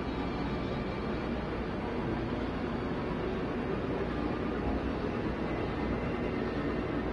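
A spacecraft engine hums in flight.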